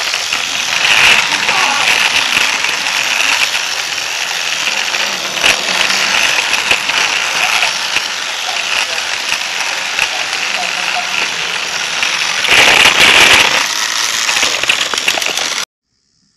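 Plastic wheels clatter over track joints.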